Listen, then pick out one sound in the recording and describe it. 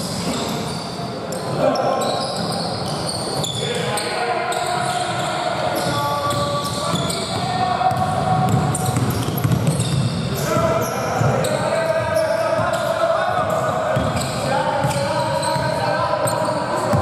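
Men shout to each other across the hall.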